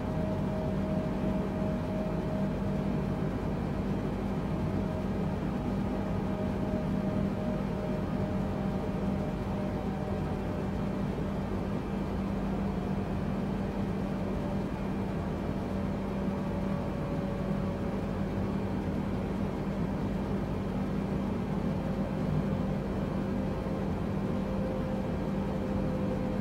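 Jet engines drone steadily and low through an airliner cockpit in flight.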